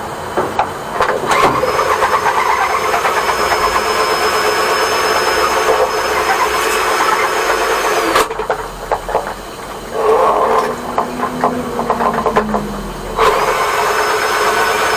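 Water from a hose sprays and splashes onto a hard floor.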